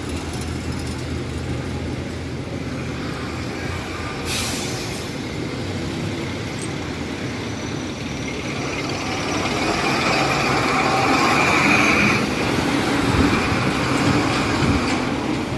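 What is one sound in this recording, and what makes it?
Traffic rumbles by outdoors.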